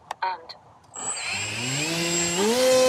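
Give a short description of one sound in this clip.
A small electric motor whirs up, rising steadily in pitch.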